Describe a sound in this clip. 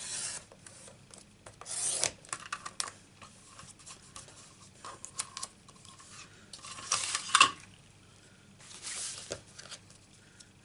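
Paper rustles and slides on a table.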